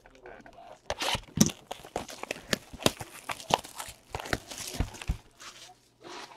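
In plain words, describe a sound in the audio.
Plastic wrap crinkles as it is torn off a box.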